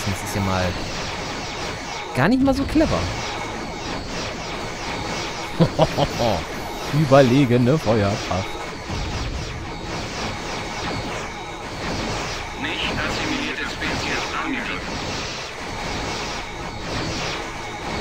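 Laser weapons fire in rapid, repeated zaps.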